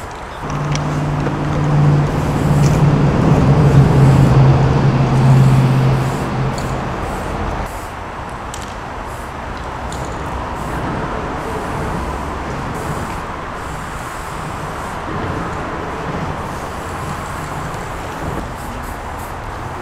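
An aerosol spray can hisses as paint is sprayed.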